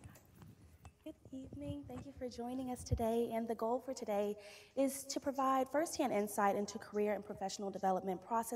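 A woman speaks through a microphone.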